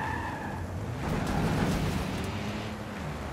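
Tyres screech as a car slides sideways.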